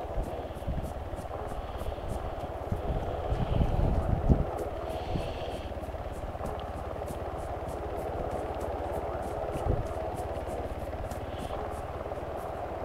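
Footsteps crunch steadily through dry grass and dirt.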